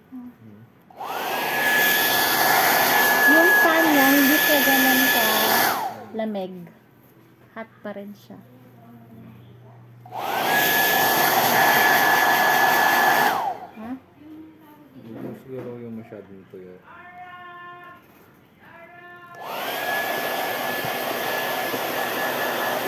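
A hair dryer blows with a steady high whine, switching on and off.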